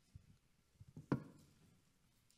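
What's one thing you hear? A microphone knocks down onto a table.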